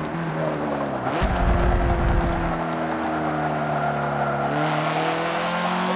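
Tyres squeal on the tarmac through a corner.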